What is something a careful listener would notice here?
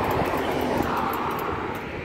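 A crosswalk button clicks as a finger presses it.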